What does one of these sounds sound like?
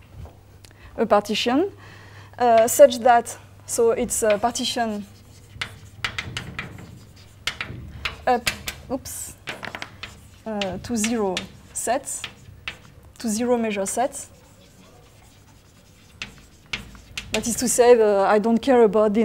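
A woman speaks calmly, as if lecturing.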